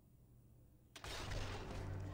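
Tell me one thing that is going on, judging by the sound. A suppressed rifle fires a single shot.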